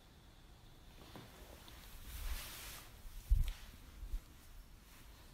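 Clothing rustles and a body shifts on a floor mat.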